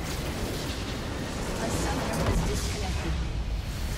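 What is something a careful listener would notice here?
A large structure explodes with a deep rumble.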